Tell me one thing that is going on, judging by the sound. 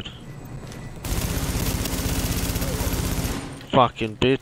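A rifle fires in a rapid, steady burst.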